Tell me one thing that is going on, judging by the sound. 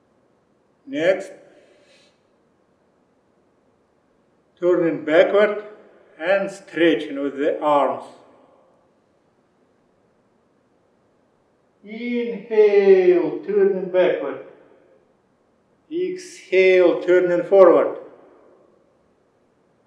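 A man speaks calmly and slowly, giving instructions close to a microphone.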